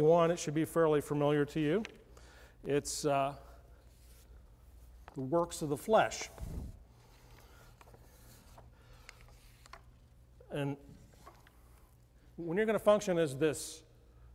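An older man speaks calmly into a microphone in a large room, with pauses.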